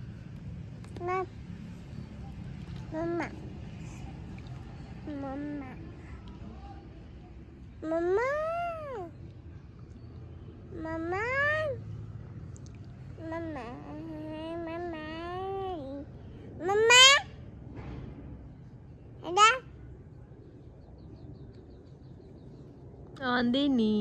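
A toddler girl babbles and squeals in short, high bursts close by.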